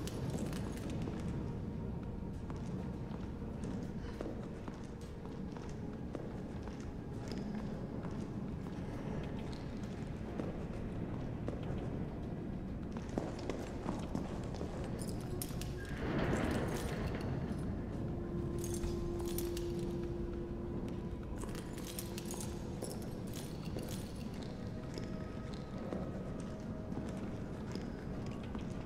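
Footsteps tread slowly on a hard concrete floor.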